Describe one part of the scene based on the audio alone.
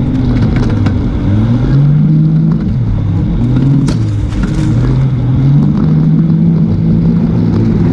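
A motorbike engine revs up and down close by.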